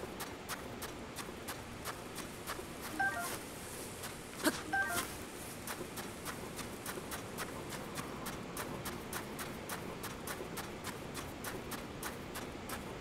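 Footsteps crunch quickly and steadily over sand.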